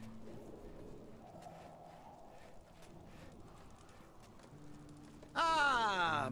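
Footsteps run over dirt and gravel.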